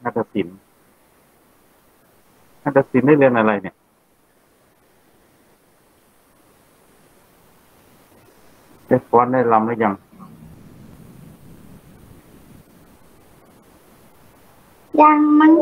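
A child speaks in short bursts over an online call.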